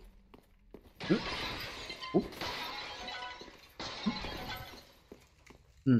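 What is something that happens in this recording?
Wooden barrels smash and clatter.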